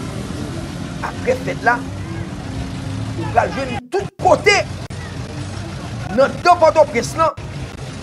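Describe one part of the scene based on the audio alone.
A man speaks steadily into a microphone, like a news presenter.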